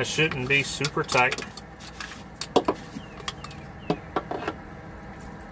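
A metal wrench clicks against an oil filter.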